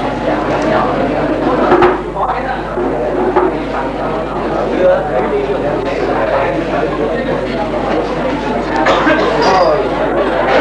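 Several elderly men talk nearby.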